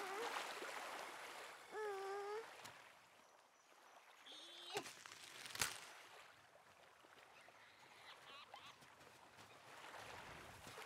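Gentle waves lap at the shore.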